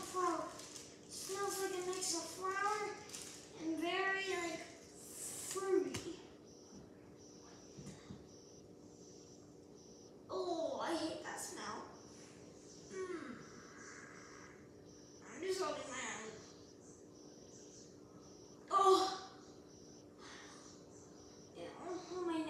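A young girl talks close by, with animation, in short bursts.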